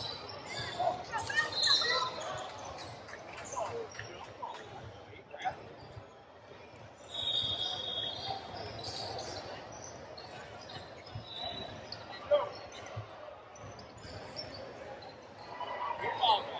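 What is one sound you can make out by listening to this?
A crowd of spectators chatters and cheers in the background.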